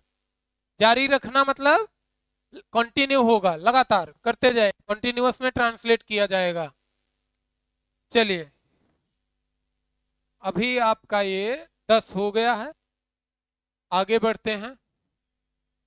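A young man lectures calmly and clearly, close to a microphone.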